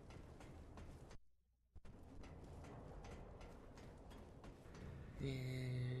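Heavy footsteps clang on a metal grating.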